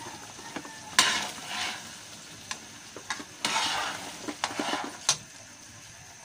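A spatula scrapes and clatters against a frying pan.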